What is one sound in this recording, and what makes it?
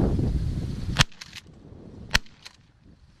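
A shotgun fires two loud shots outdoors.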